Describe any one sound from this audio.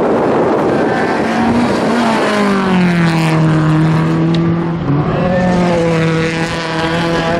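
A rally car engine roars loudly as it accelerates past.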